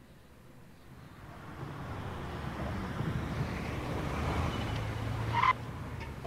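A car approaches and drives past.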